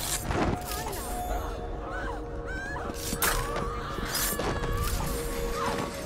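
Blows land with dull thuds in a brief scuffle.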